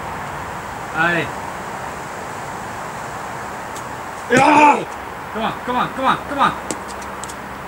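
A man nearby shouts encouragement.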